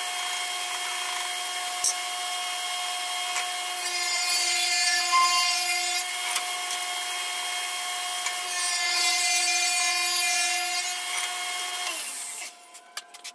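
A table saw whines steadily.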